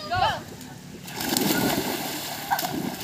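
Children jump into a pool with a loud splash.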